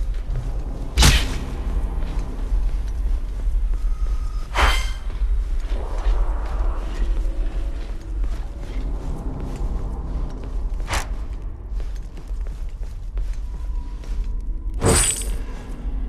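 A bow twangs sharply as arrows are loosed.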